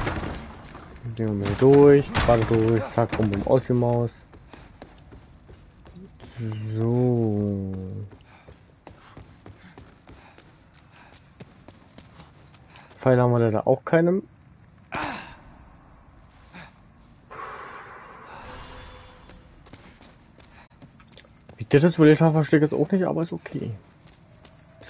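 A young man talks calmly into a close microphone, in short bursts.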